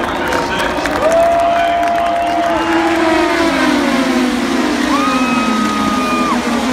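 Race cars roar past at high speed with rising and falling engine whine.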